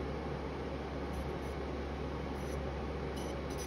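A palette knife scrapes through powdered pigment on a glass slab.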